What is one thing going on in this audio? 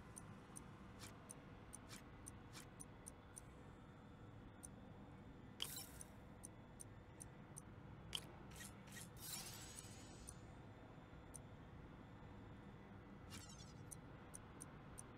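Soft electronic menu clicks tick repeatedly.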